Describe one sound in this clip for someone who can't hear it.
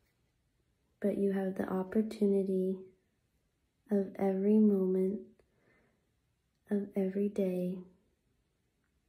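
A young woman speaks calmly and close to a phone microphone, in short phrases.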